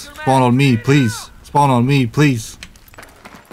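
A young man calls out loudly close to a microphone.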